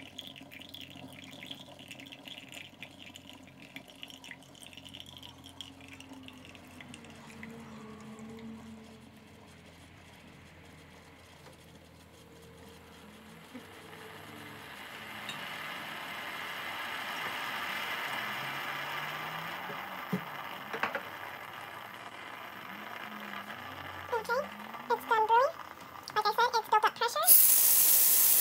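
A coffee machine hums steadily.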